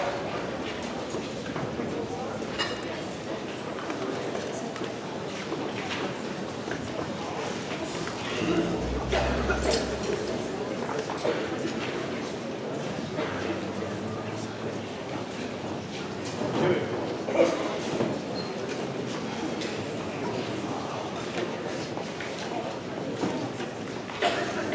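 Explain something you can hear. A crowd murmurs and chatters.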